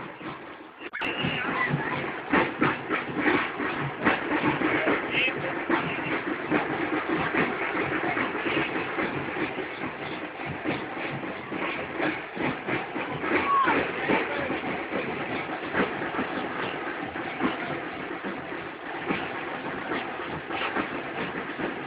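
A crowd of children and adults chatter and call out nearby, outdoors.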